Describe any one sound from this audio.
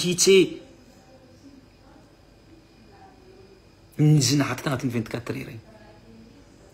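A young man speaks with animation, close by.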